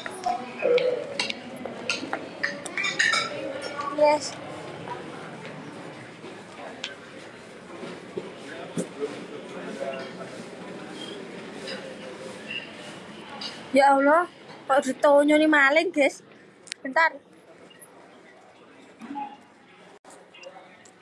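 A young girl talks quietly close to a phone microphone.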